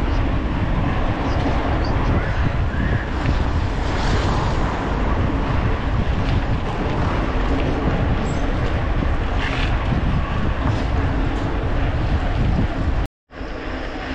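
Wind rushes loudly past the rider outdoors.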